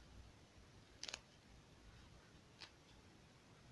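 A pen scratches briefly on paper.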